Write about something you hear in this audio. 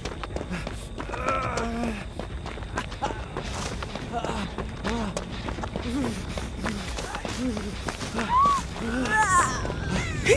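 Quick footsteps run and rustle through dry grass.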